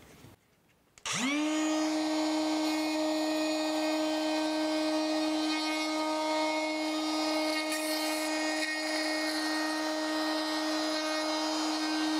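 An electric router whines steadily at high speed.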